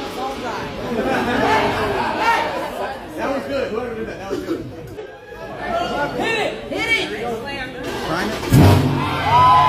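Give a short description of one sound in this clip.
A crowd chatters and cheers excitedly nearby.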